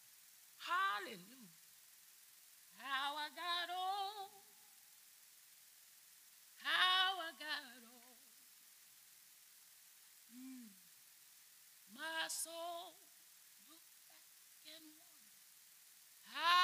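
An elderly woman speaks with animation into a microphone, in short bursts with pauses.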